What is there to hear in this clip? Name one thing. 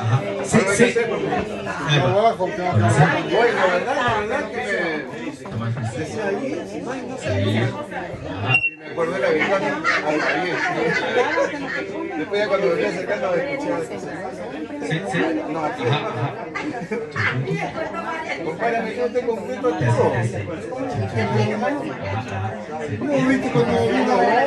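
A crowd of men and women chat at once nearby, outdoors.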